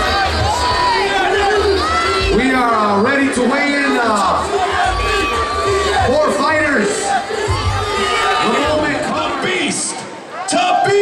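A crowd of people chatters and calls out loudly close by.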